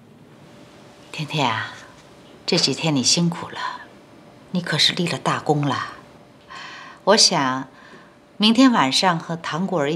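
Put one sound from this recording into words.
A middle-aged woman speaks calmly and warmly nearby.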